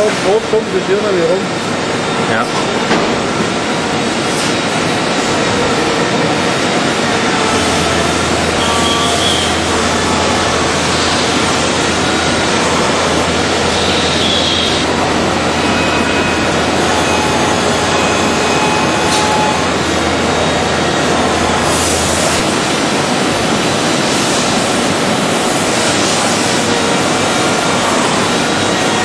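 A machine tool cuts metal with a steady, rough whirring grind.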